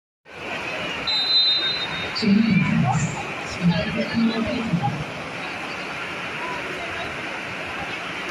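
A volleyball bounces on a hard court floor.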